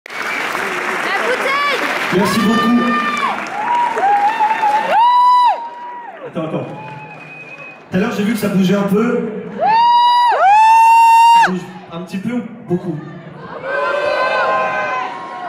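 A man raps and sings loudly into a microphone, heard through loudspeakers.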